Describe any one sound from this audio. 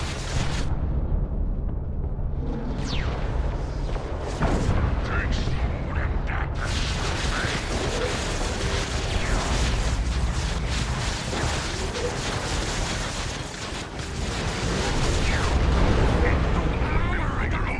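Blasts boom with a low rumble.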